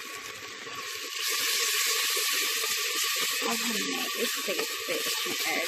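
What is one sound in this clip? Food sizzles and crackles in a hot pot.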